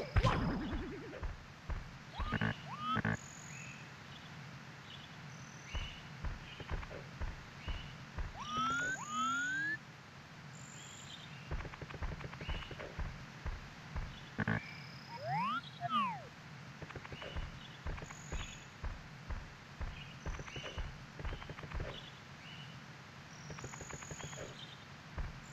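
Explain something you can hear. Video game footsteps patter as a character runs up a slope.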